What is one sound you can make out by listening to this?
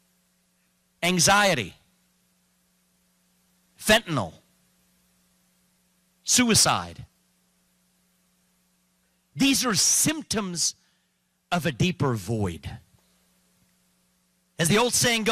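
A man speaks forcefully into a microphone over a loudspeaker, in short bursts with silent pauses.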